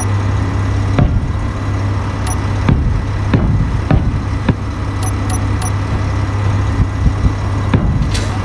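Building blocks snap into place with short, sharp thuds.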